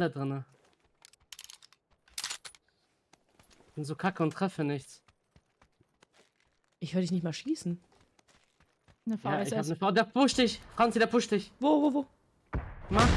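A young woman talks with animation into a microphone, in short bursts.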